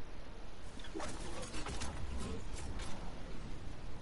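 A glider snaps open with a loud whoosh.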